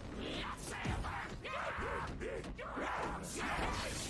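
Monsters snarl and growl up close.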